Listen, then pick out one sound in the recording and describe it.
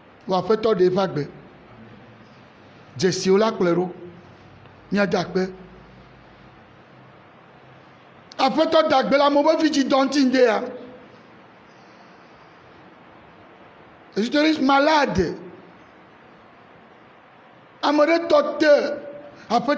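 A man speaks into a microphone in short phrases with pauses, in a slightly echoing room.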